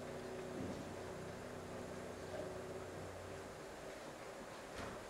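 A piano plays soft final notes that fade away.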